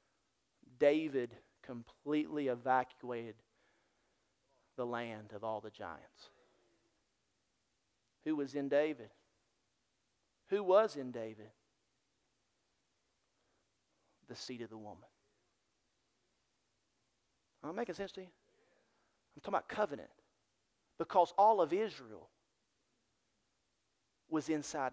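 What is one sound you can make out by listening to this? A middle-aged man speaks with animation through a microphone, with pauses between phrases.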